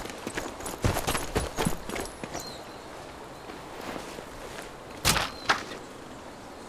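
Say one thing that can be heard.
Footsteps crunch softly on dirt.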